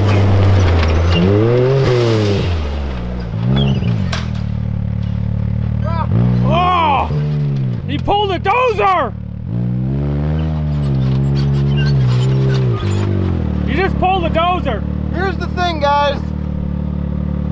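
An off-road buggy's engine revs sharply up and down in quick bursts.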